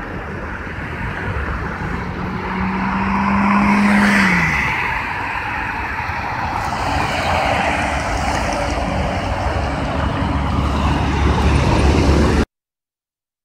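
Traffic rushes past on a nearby road, heard outdoors.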